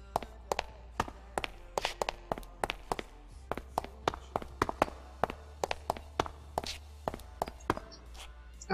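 Footsteps tread quickly on stone.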